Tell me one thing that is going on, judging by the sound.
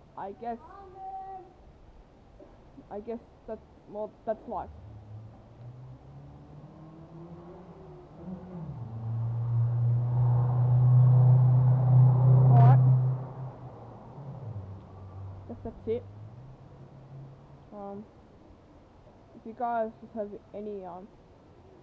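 A teenage boy talks calmly close by.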